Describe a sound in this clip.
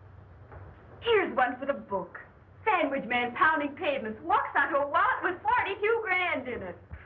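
A young woman talks with animation in a room.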